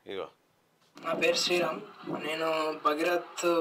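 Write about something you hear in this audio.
A man speaks with animation into a microphone.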